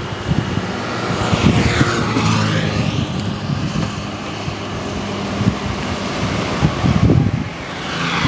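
Metal tongs clink and scrape while picking up fried chicken.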